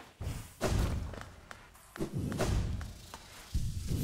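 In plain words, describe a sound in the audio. Quick sword slashes swish and strike in a short fight.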